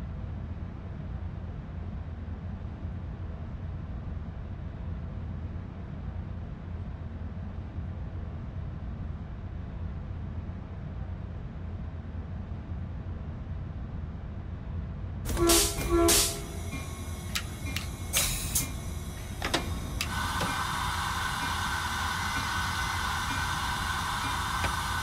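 A locomotive engine idles with a low, steady rumble.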